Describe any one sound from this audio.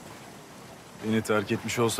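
A young man speaks quietly and sadly, close by.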